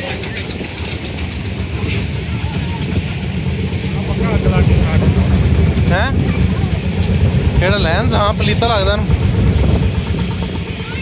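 A vintage tractor engine chugs and thumps steadily nearby.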